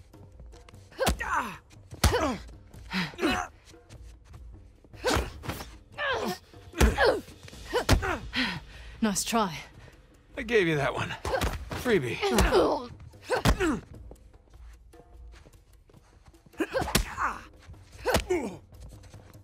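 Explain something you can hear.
A man grunts and speaks with effort.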